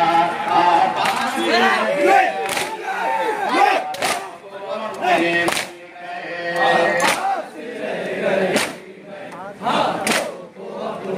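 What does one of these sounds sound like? A crowd of men chant together in response.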